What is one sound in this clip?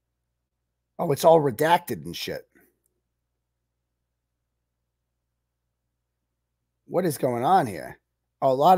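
A man speaks close to a microphone in short bursts, with pauses.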